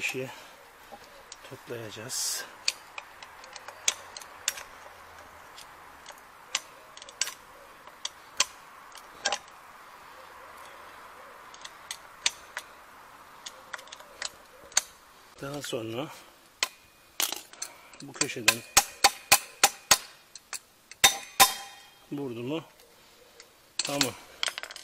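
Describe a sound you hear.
Metal tools clink and tap against one another.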